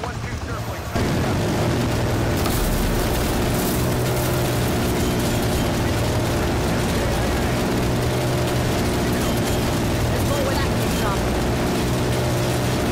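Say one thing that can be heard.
A heavy machine gun rattles steadily from a helicopter.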